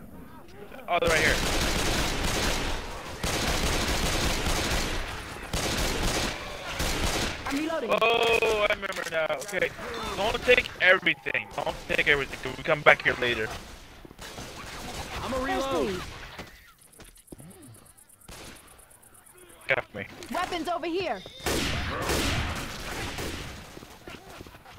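Guns fire in loud rapid bursts.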